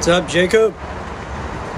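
A man speaks briefly and loudly, close by.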